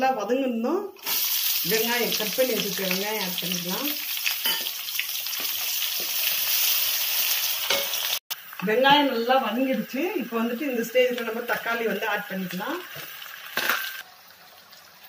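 Chopped onions sizzle loudly in hot oil.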